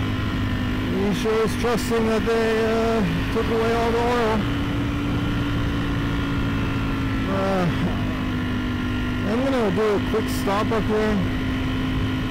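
A motorcycle engine revs up and down as gears shift.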